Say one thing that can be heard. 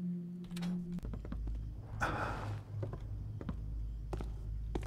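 Soft footsteps tread on a wooden floor.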